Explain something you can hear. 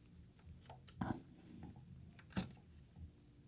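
A small knob creaks and clicks softly as it is turned.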